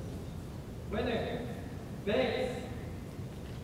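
A man calls out short commands in an echoing hall.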